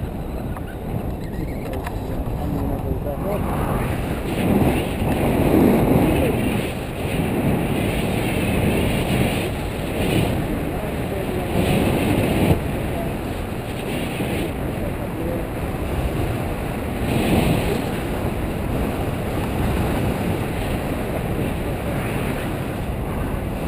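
Strong wind rushes and buffets against a microphone.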